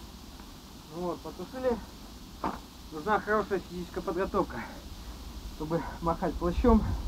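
A man speaks calmly close by, outdoors.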